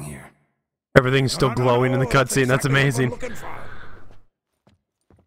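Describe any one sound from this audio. A man exclaims with animation.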